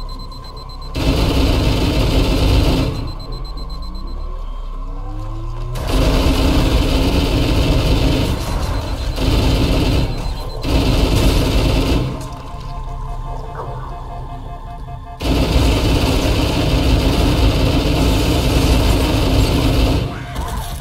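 An automatic rifle fires long, rapid bursts.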